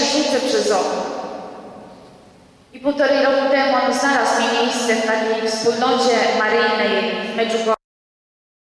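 A young woman sings through a microphone in an echoing hall.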